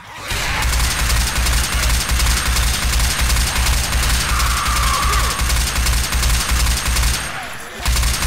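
An assault rifle fires in rapid automatic bursts.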